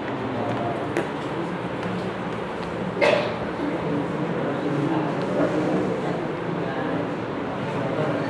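A duster rubs across a whiteboard.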